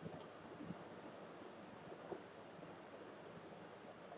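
A young man gulps down water quietly.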